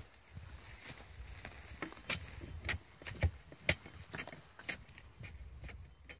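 Leather rustles and creaks as it is handled.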